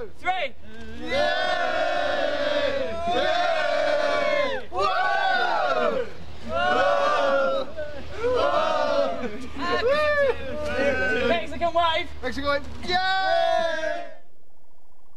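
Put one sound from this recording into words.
A crowd of young men and women cheers and screams with excitement.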